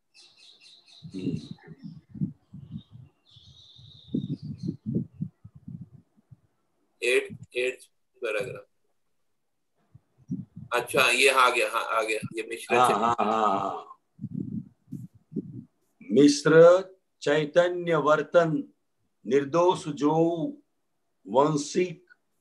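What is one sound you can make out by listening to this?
An elderly man speaks calmly, heard through an online call.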